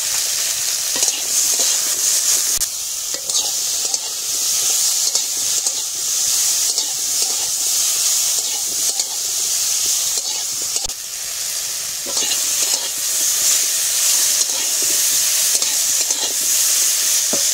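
A metal spatula scrapes against a pan.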